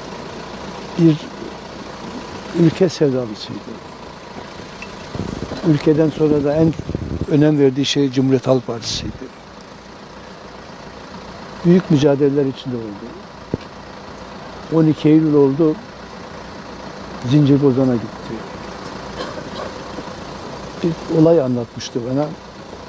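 An elderly man speaks slowly and calmly into microphones close by, with pauses between phrases.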